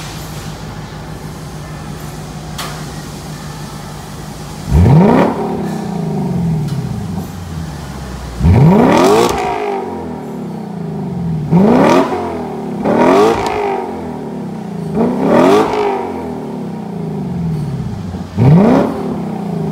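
A sports car engine idles with a low rumble.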